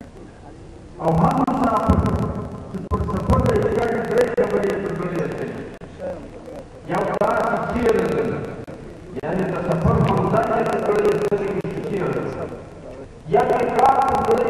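An elderly man speaks forcefully through a loudspeaker outdoors.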